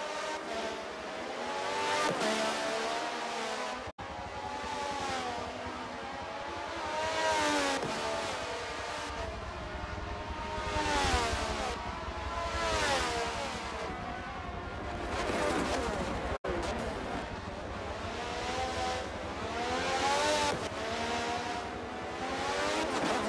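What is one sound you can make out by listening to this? Racing car engines whine loudly, rising and falling in pitch as the cars speed past and shift gears.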